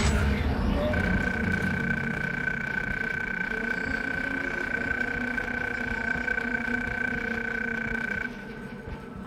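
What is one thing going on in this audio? An electronic display hums with a steady high tone.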